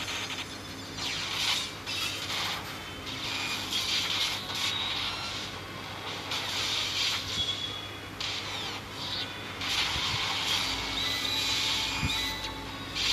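Swords slash and clang in quick bursts.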